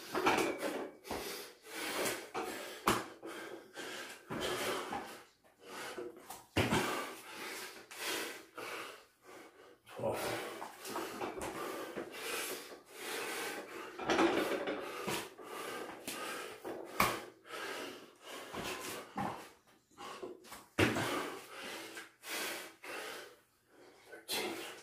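Bare feet thud onto a floor mat as a man jumps.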